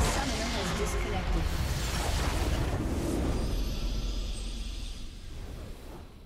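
A large structure explodes with a deep rumble.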